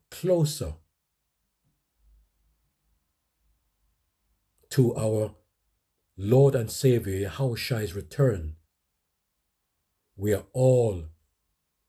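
A man speaks up close in short bursts, with pauses between them.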